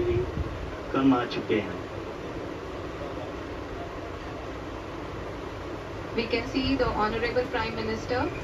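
A man speaks calmly through a television loudspeaker.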